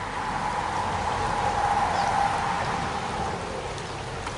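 River rapids rush and splash steadily.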